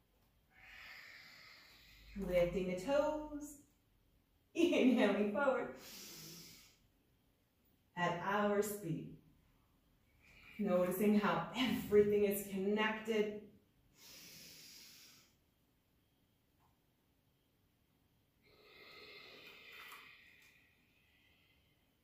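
A woman breathes out slowly and audibly.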